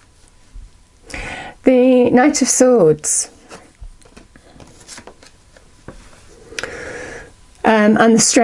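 Playing cards rustle and slide softly as they are handled.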